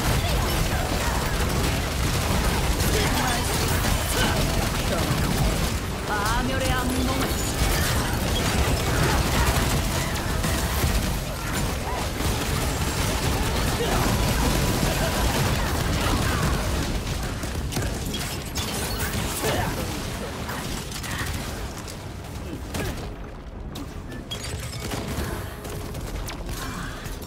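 Spell effects crackle and boom in a fast game battle.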